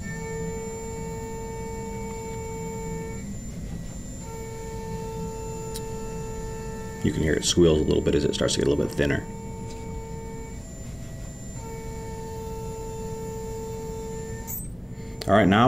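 A milling machine spindle whines steadily as it cuts metal.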